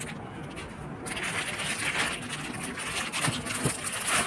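A plastic packet crinkles as hands handle it.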